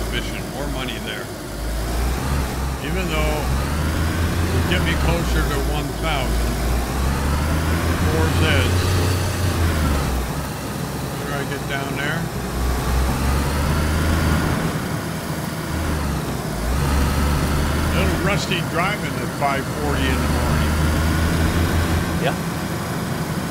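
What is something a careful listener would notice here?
Young men talk with animation over microphones.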